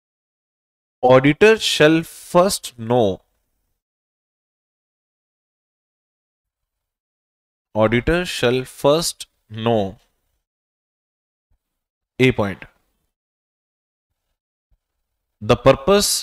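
A man speaks calmly into a close microphone, in short bursts with pauses.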